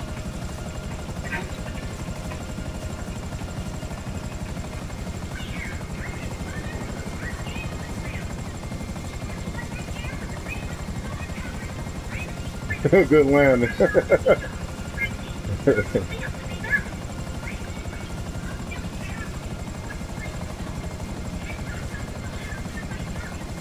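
A helicopter's rotor thrums steadily at idle close by.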